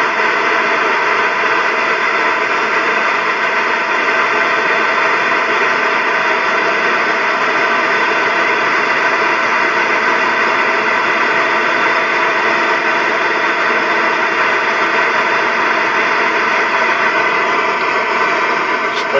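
Wind rushes loudly and steadily past while riding at speed.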